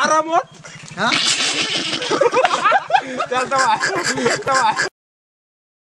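Young men laugh loudly together.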